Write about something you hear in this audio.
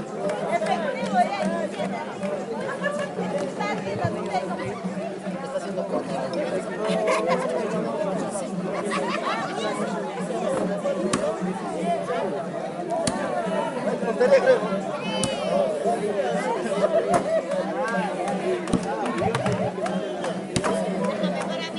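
An axe chops into a tree trunk in sharp knocks.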